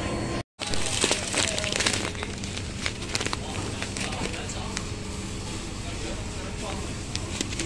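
A plastic bag of rice crinkles as a hand handles it.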